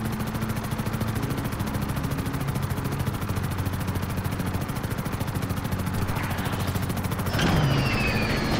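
A helicopter's rotor whirs steadily close by.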